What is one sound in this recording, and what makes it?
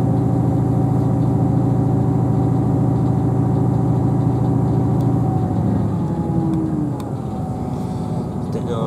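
A train rumbles along the tracks with a steady low drone, heard from inside a carriage.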